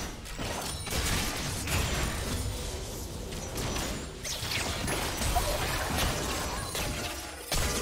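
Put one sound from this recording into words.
Magic spells whoosh and crackle in quick bursts during a video game battle.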